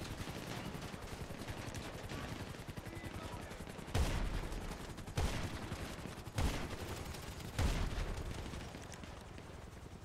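A helicopter's rotor thumps steadily overhead.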